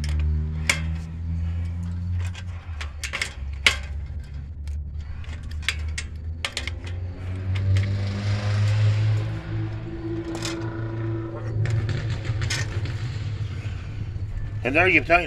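Metal tire levers click and scrape against a bicycle wheel rim.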